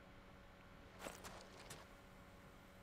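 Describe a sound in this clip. A metal sword scrapes and clanks as it is slung onto a back.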